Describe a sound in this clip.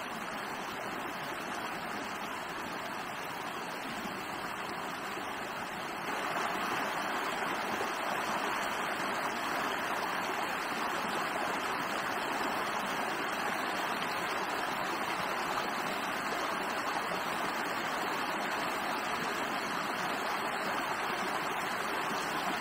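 Water splashes as a woman wades in a stream.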